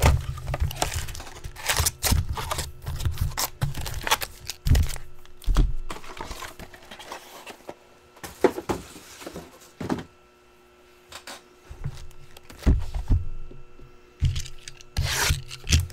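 Card packs rustle and tap as hands handle them.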